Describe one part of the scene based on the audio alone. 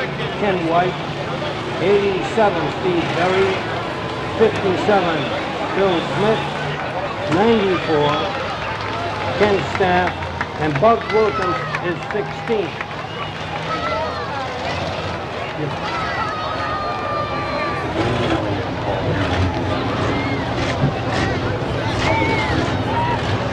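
A race car engine rumbles as the car rolls slowly by.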